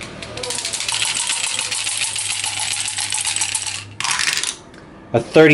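Dice rattle and tumble into a small box.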